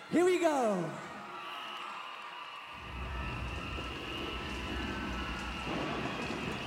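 A large crowd cheers loudly outdoors.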